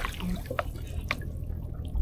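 Water drips and splashes as a fishing net is hauled up from a river.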